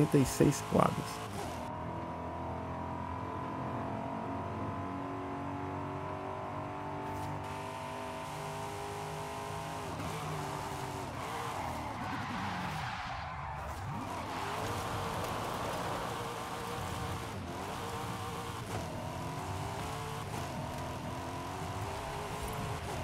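A sports car engine drones steadily at high speed.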